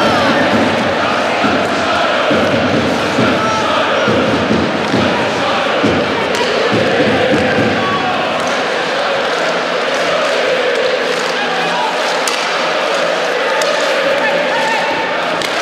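A large crowd cheers and chants steadily in an echoing arena.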